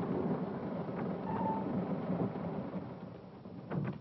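A car engine idles and then stops.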